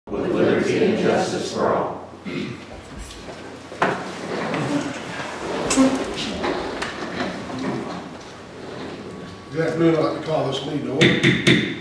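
A man speaks solemnly through a microphone in a large room.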